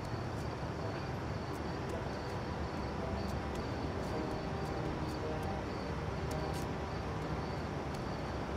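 Footsteps tap on pavement at a walking pace.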